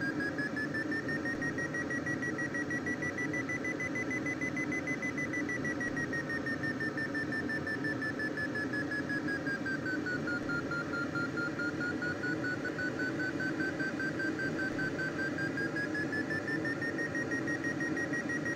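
Wind rushes steadily past a gliding aircraft.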